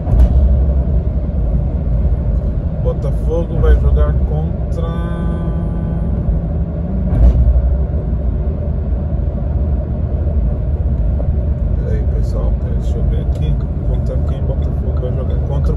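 Tyres roar steadily on a highway.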